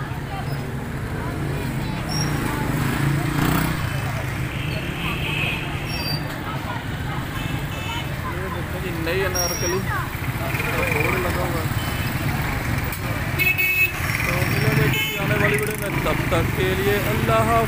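Motorbike engines hum and rumble nearby.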